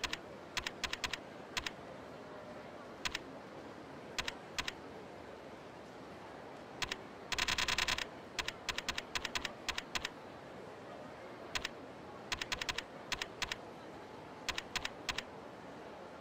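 Short electronic menu blips tick as a selection moves through a list.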